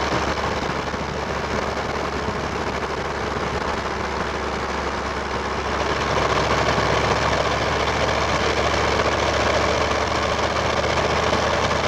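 A turbo diesel V8 pickup with a straight exhaust drones under load up a grade, heard from inside the cab.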